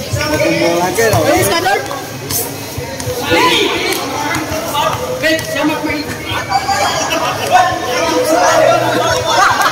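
Young men shout and call out to each other across a large echoing court.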